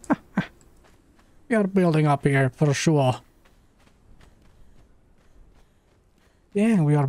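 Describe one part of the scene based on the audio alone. Footsteps patter quickly on dry, gravelly ground.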